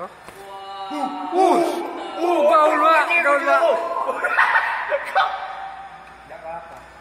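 A young man laughs loudly nearby.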